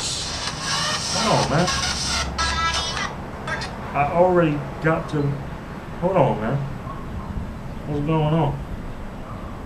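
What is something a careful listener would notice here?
A young man speaks casually close by.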